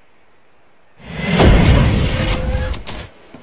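A craft lands with a loud rumbling thud and hiss.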